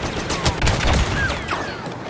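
A loud explosion booms and crackles close by.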